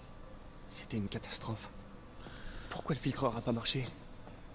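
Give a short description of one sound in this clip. A man talks into a headset microphone.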